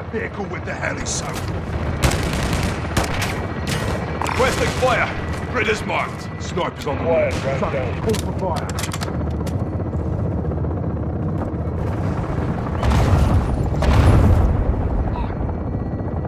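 Gunfire bursts out in rapid, sharp cracks.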